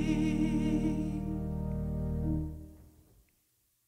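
A woman sings a sustained note through a microphone in an echoing hall.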